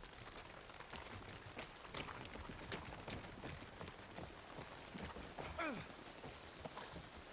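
Footsteps thud and splash on wet wooden planks.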